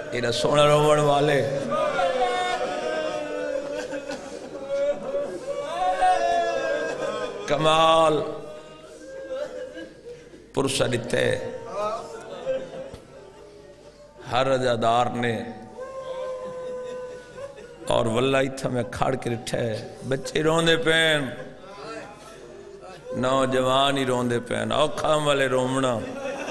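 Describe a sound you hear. A man speaks with passion into a microphone, heard through a loudspeaker in an echoing hall.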